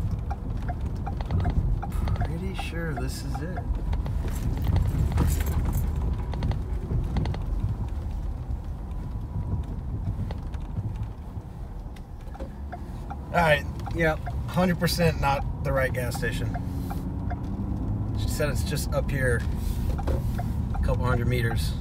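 A car engine rumbles low and steadily while driving.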